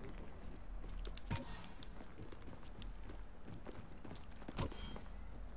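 Footsteps thud on a metal roof.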